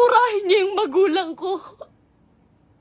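A young woman speaks with animation, close to a phone microphone.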